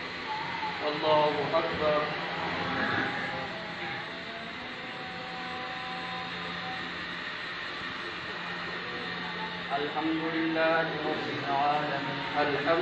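A man chants a prayer aloud outdoors.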